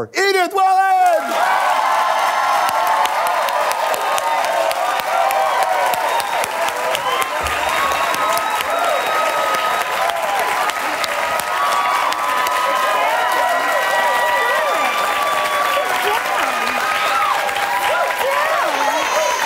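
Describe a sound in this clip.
A studio audience cheers and whistles.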